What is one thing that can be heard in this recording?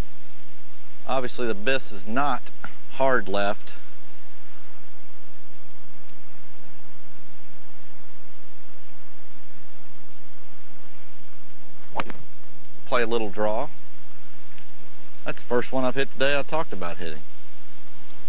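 A man speaks calmly and clearly into a close microphone, in short phrases with pauses.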